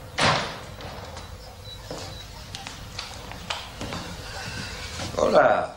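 An elderly man's shoes tap on a hard floor as he walks.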